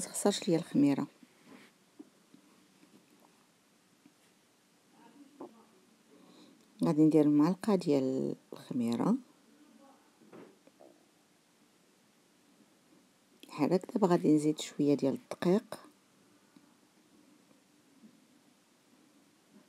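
A wooden spoon stirs softly in a metal bowl.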